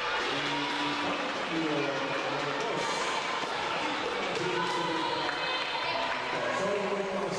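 Young women call out to each other across a large echoing hall.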